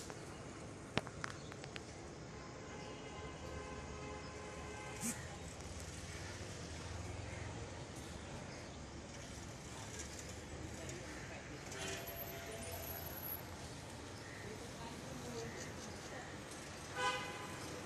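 A motorbike engine hums faintly in the distance.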